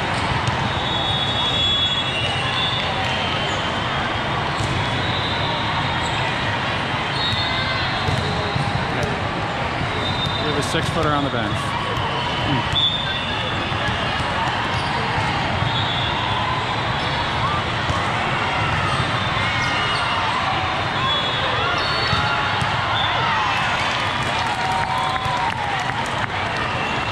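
A crowd of spectators chatters throughout a large echoing hall.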